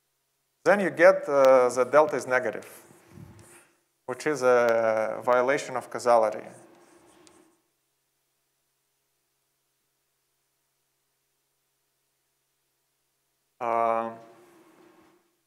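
A young man speaks calmly and clearly, as if lecturing.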